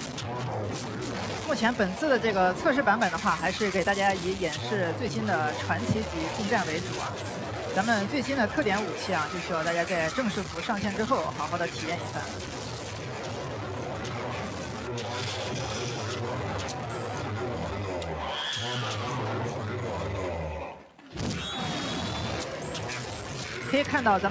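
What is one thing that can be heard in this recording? Energy weapons zap and crackle in bursts.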